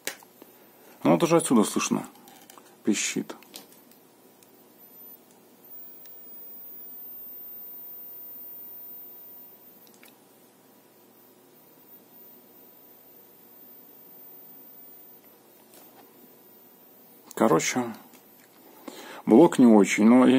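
Plastic plugs and a power adapter rattle and click as a hand handles them.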